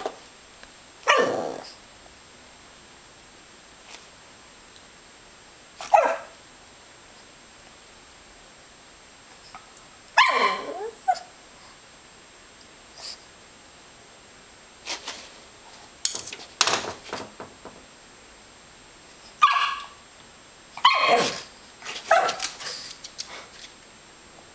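A small dog barks and growls in short bursts close by.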